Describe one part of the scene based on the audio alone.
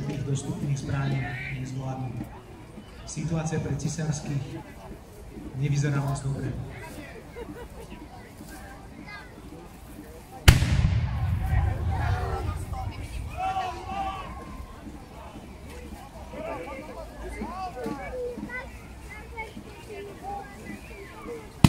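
A crowd of onlookers chatters in the distance.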